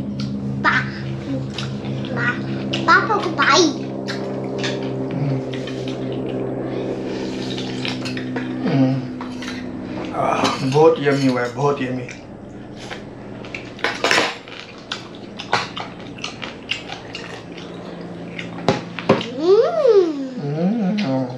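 A man slurps noodles loudly.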